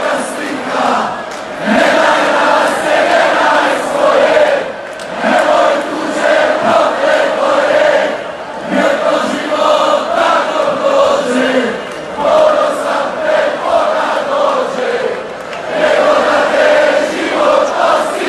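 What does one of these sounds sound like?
Men close by sing along and shout with excitement.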